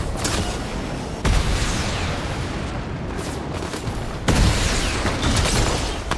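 A jet thruster roars steadily.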